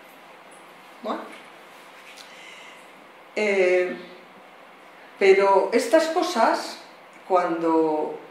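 A middle-aged woman speaks calmly into a microphone, with pauses.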